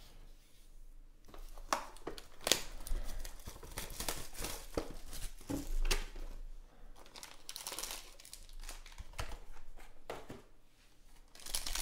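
Cardboard packaging rustles and clicks as a box is handled and opened.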